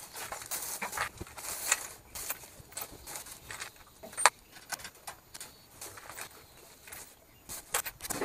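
A plastic bag rustles in someone's hands.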